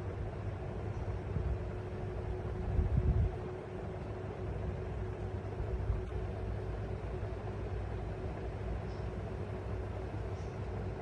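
A cockatiel chirps softly a few times.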